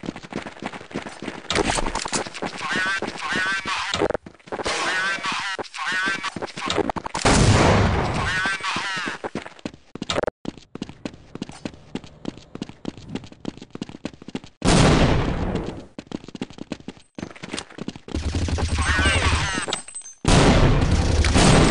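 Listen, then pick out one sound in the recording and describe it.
Footsteps crunch quickly over gravel and hard ground.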